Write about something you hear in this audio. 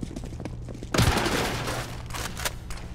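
Wooden boards crack and splinter apart.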